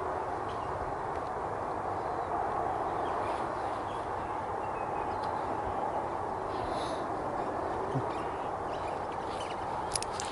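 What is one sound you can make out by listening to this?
A distant train rumbles steadily as it approaches.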